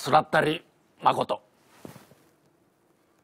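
A young man speaks briefly close by.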